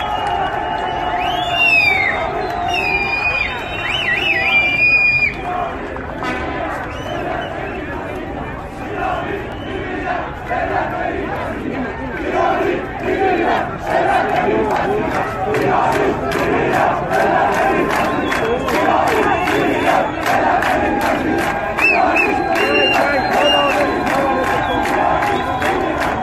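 A large crowd outdoors chants in unison.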